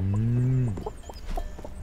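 A cow moos briefly.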